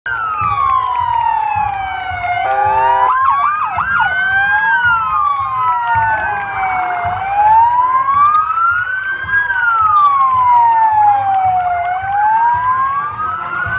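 A crowd cheers and claps along the road.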